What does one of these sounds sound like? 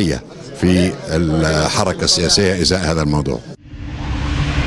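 An elderly man speaks calmly into microphones close by.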